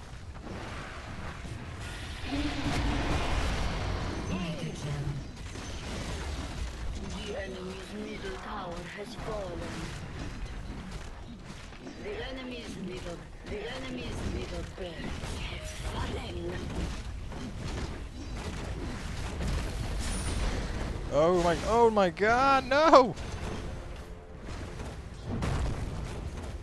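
Spells and attacks from a video game crackle and thud throughout.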